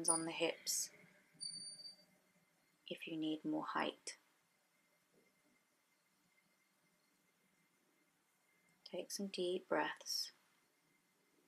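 A woman speaks calmly and close up.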